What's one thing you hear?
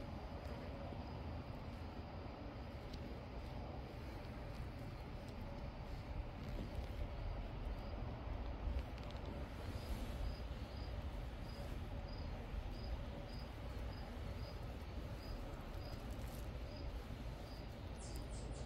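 A chipmunk cracks sunflower seeds up close.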